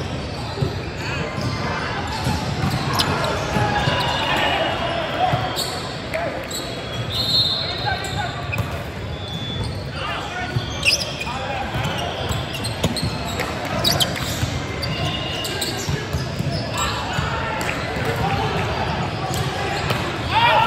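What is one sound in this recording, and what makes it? A volleyball is struck with sharp slaps, echoing in a large hall.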